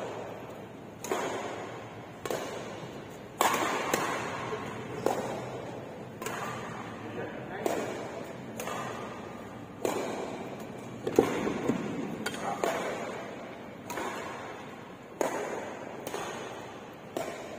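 Rackets strike a shuttlecock in sharp pops that echo through a large hall.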